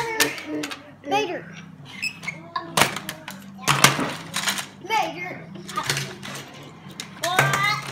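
Plastic toy trucks clack and knock on a table.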